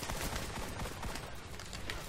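A pistol fires in quick shots.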